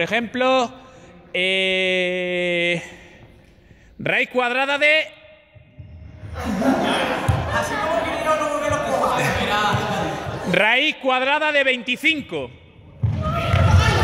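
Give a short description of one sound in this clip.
Young people shout and sing loudly in a large echoing hall.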